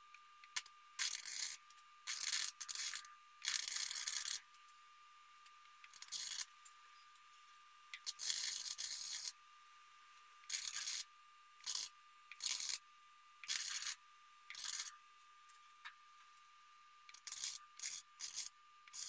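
A welding torch crackles and sizzles in short bursts.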